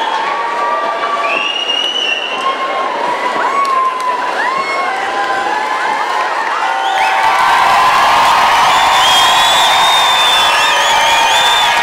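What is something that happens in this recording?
A huge outdoor crowd cheers and whistles loudly, growing louder partway through.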